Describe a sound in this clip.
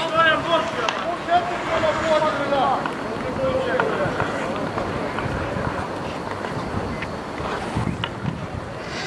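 Sticks knock against a ball on the ice.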